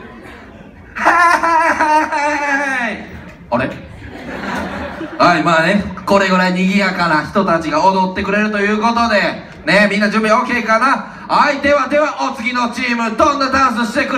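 A man talks with animation through a microphone in a large echoing hall.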